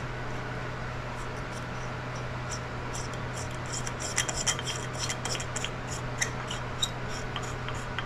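Light ticking clicks come from a bulb being screwed into a socket.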